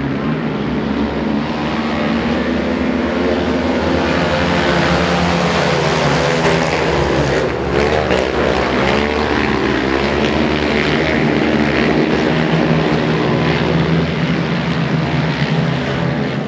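Several quad bike engines roar and whine loudly as they race past.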